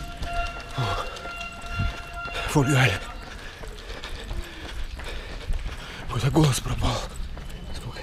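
A middle-aged man speaks in short bursts close to the microphone, slightly out of breath.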